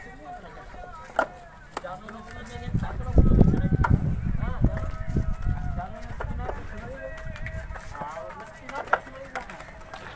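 Bricks clack together as they are handed down and stacked.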